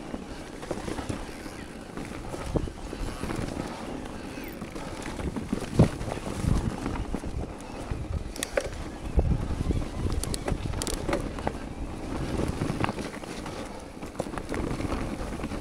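Bicycle tyres roll and crunch over rock and dirt.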